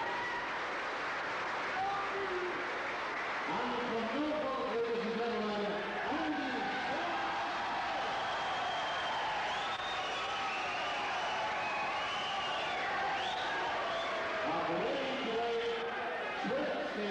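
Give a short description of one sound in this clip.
A crowd murmurs and cheers.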